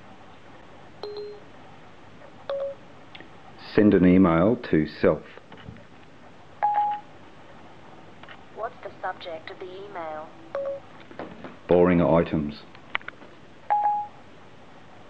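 A phone chimes with short electronic beeps.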